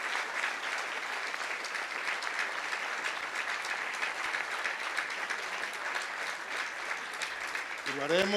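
A large outdoor crowd applauds steadily.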